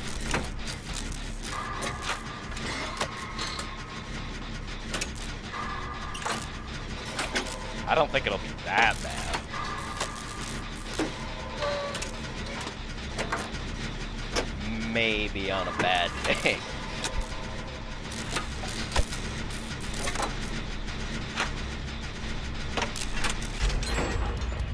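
Metal parts clank and rattle as an engine is being repaired.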